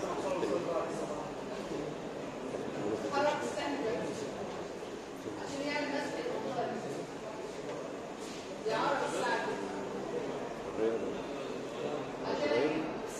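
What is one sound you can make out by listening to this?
A woman speaks steadily, as if explaining a lesson.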